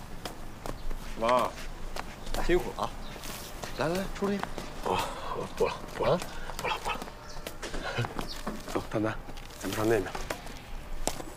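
A young man speaks cheerfully nearby.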